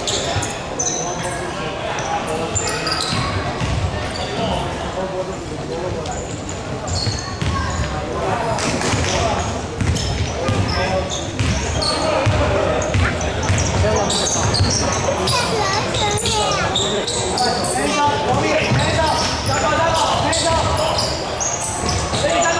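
Sneakers squeak sharply on a hardwood court in a large echoing hall.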